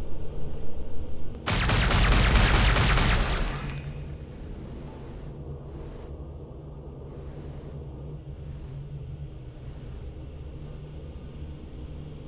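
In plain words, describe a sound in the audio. A low engine drones steadily underwater.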